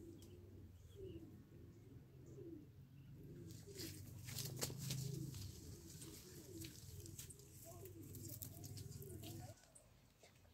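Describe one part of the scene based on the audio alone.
Leaves and branches rustle and shake as a monkey pulls on them.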